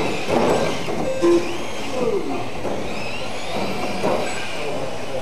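Small electric toy cars whine and buzz, rising and falling in pitch as they race.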